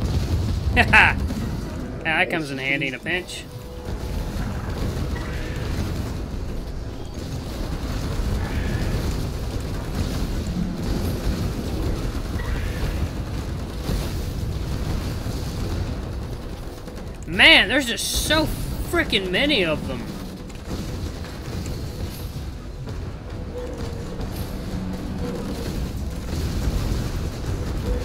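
Explosions boom.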